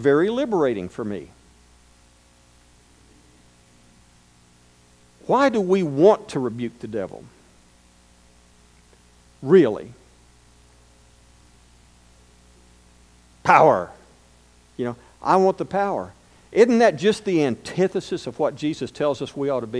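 A middle-aged man speaks with animation into a microphone, with pauses between phrases.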